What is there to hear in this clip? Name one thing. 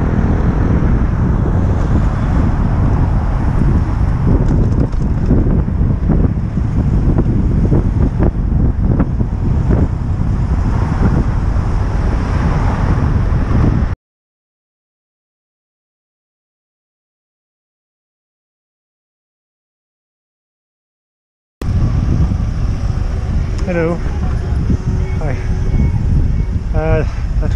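Wind rushes loudly over the microphone.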